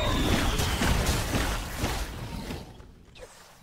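Magical blasts crash and whoosh loudly.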